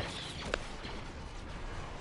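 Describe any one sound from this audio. An explosion booms.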